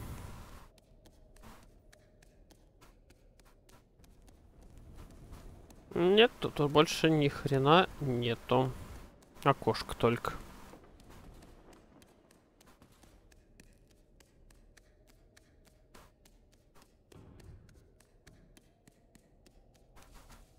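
Small footsteps patter softly on stone.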